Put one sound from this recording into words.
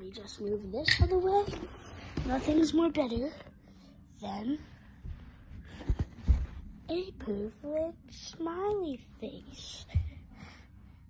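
Hands bump and rub against a phone close up.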